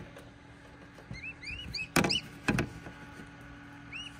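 A plastic lid knocks and rattles.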